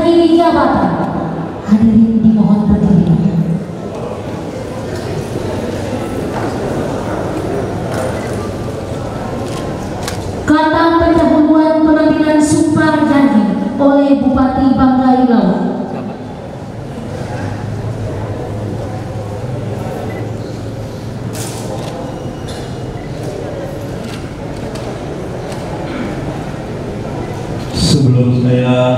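A man speaks slowly and loudly through a loudspeaker in a large echoing hall.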